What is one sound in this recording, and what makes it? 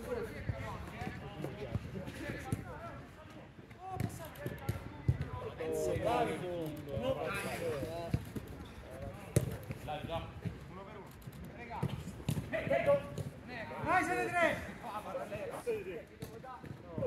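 Men shout to each other across an outdoor pitch.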